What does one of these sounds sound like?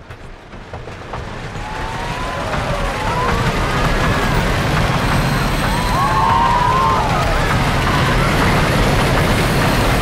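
Wind rushes loudly past as the coaster plunges downhill.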